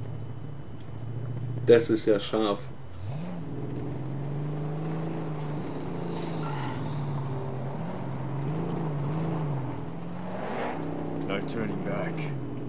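A car engine rumbles and revs steadily throughout.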